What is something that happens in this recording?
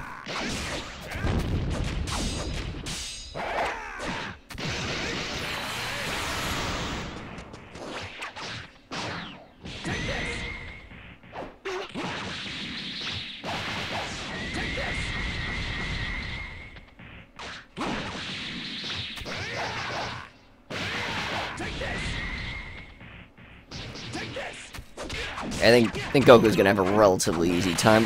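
Punches and blasts of a fighting game thud and crackle in quick bursts.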